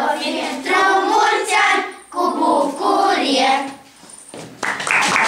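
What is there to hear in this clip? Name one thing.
A group of young children sing together nearby.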